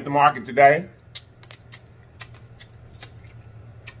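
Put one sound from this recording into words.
A man sucks and slurps crab meat loudly.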